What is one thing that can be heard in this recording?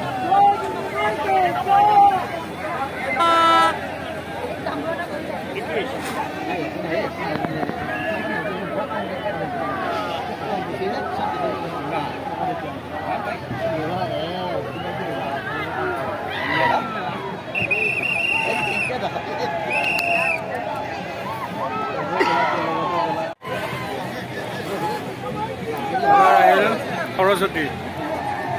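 Men shout excitedly nearby.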